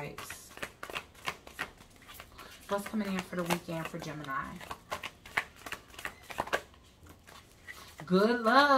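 Playing cards riffle and snap as they are shuffled.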